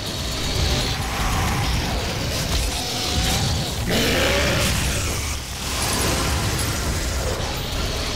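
A chainsaw revs and tears through flesh.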